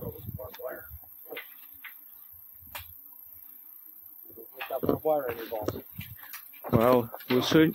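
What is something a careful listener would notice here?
A metal gate rattles and clanks as someone climbs over it.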